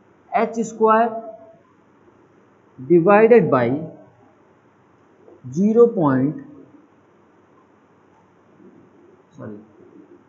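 A young man speaks calmly in short phrases, with pauses.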